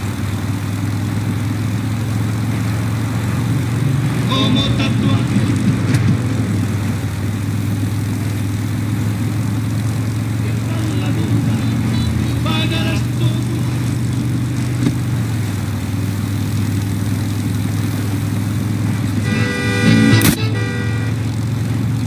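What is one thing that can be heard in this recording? Tyres roll over asphalt.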